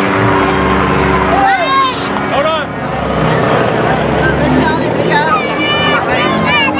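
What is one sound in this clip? A large crowd of men and women chatters outdoors.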